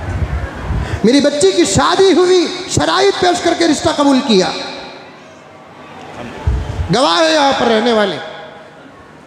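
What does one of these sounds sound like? An elderly man speaks slowly and expressively into a close microphone, with pauses.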